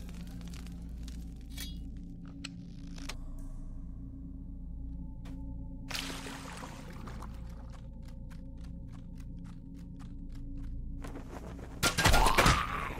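Footsteps patter steadily on stone.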